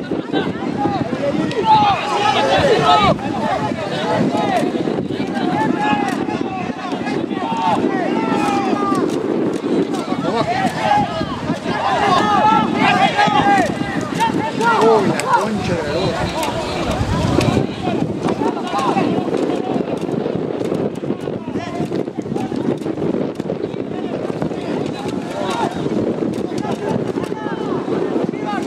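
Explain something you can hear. Young men shout to each other on a playing field.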